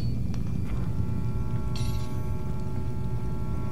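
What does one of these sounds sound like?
Footsteps scuff softly on a stone floor.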